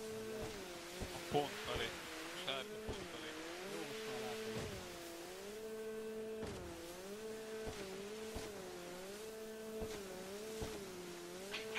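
Water splashes and sprays against a jet ski.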